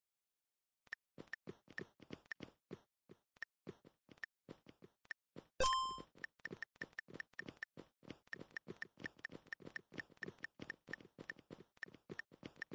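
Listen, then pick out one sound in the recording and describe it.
Rapid footstep sounds tick in a retro video game.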